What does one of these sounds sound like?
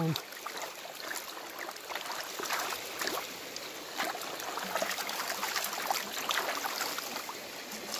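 Hands scrape and rake through wet gravel.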